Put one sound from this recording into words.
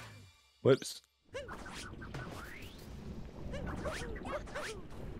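Cartoonish video game sound effects chirp and bounce in quick bursts.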